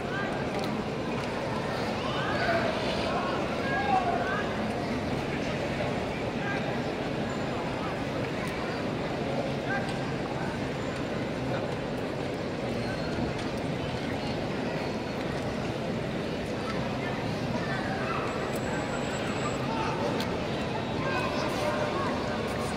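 A large stadium crowd murmurs and cheers steadily in the open air.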